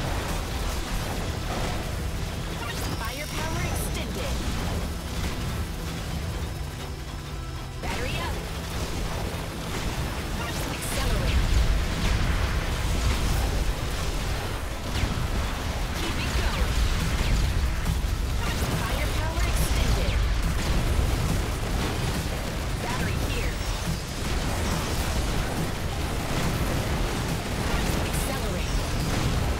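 Video game blasts and explosions crackle rapidly.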